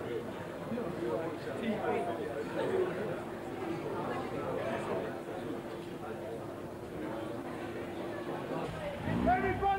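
A crowd of young people chatters and talks nearby, echoing in a large indoor space.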